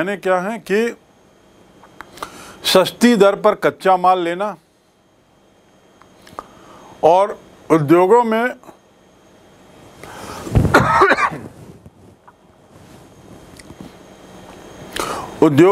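A middle-aged man speaks calmly and clearly into a microphone, lecturing.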